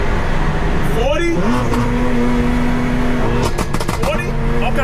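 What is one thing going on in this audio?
A supercharged V8 car shifts up a gear under full throttle.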